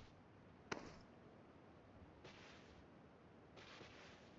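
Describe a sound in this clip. Gear rustles as a soldier drops flat onto the grass.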